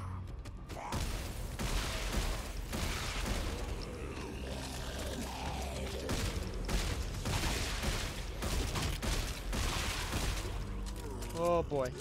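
A weapon fires rapid bursts with a crackling hiss.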